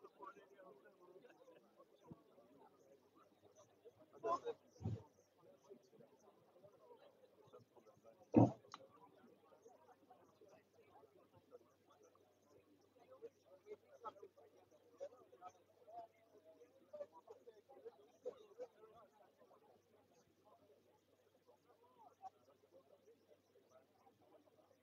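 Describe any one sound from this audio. A crowd of men and women chatter quietly in the open air.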